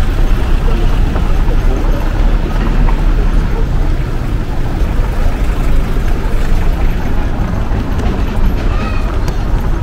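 Suitcase wheels rattle over paving stones.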